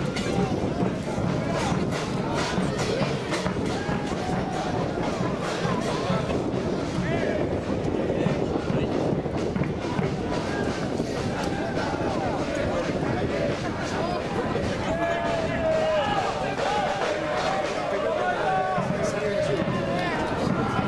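A crowd of spectators chants and sings loudly outdoors.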